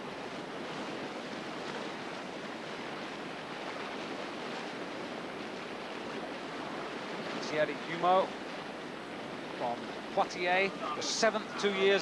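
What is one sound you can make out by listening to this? A paddle splashes in rough water.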